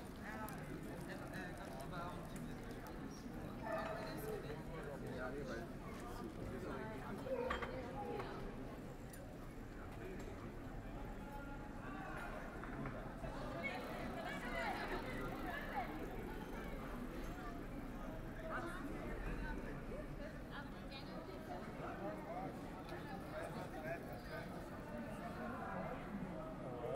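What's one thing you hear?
Footsteps pass by on pavement.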